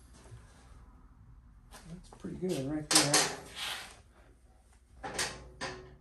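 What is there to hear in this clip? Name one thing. A metal wrench clanks on a metal table.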